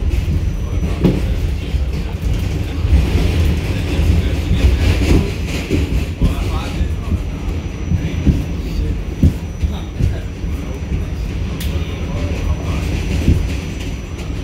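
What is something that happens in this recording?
Metal parts of the train car clank and squeak.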